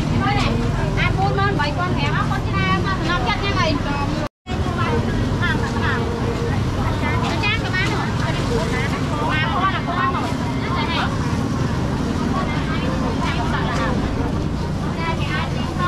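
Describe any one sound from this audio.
Plastic bags rustle.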